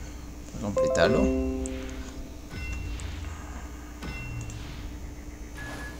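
Short electronic beeps count down.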